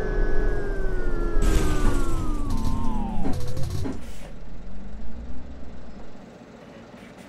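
A bus engine winds down as the bus slows.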